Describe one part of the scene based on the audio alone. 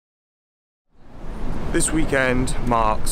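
A young man talks with animation, close up outdoors.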